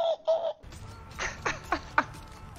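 A young man laughs loudly and excitedly.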